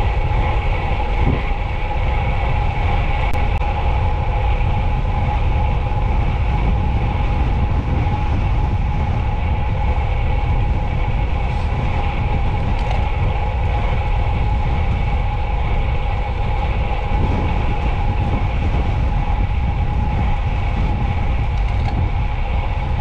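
Bicycle tyres hum on rough asphalt.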